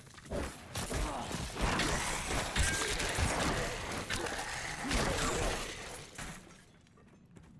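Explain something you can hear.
Blows, clashes and crunches of a fierce fight ring out from a game.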